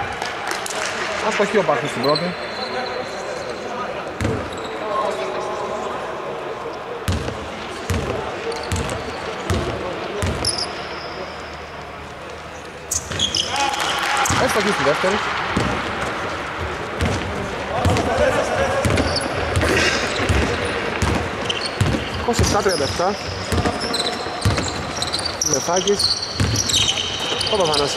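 Men shout and call out to each other across the hall.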